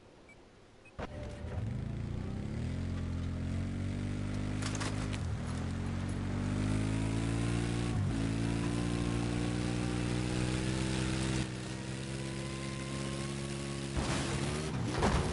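An engine roars steadily as a vehicle drives along.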